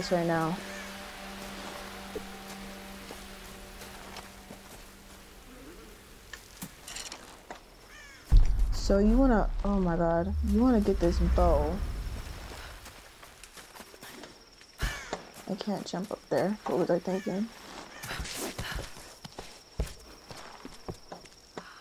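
Footsteps crunch on leafy ground.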